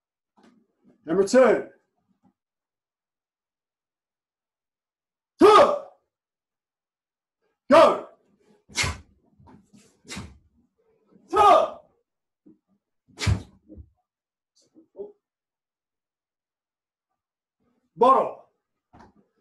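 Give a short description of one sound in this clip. A man shouts sharp cries while striking the air.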